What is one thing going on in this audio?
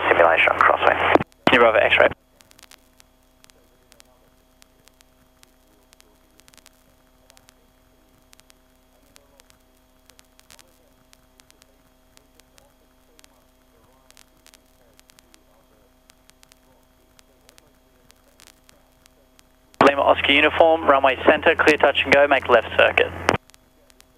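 A young man talks calmly through a headset radio.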